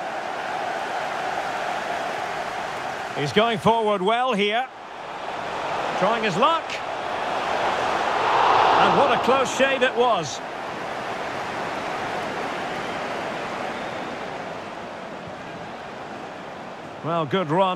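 A large crowd roars in a stadium, swelling to a loud cheer.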